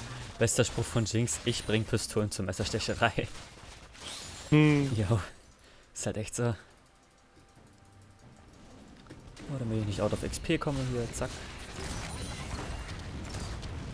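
Game spell effects crackle and clash in a fight.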